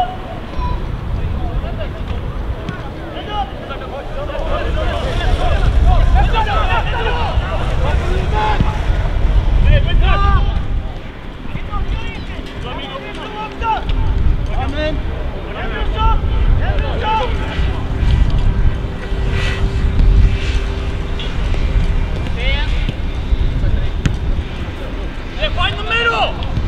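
Football players shout to each other across an open field.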